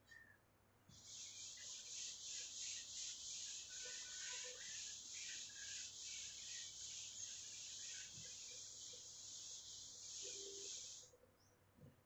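A duster rubs briskly across a board.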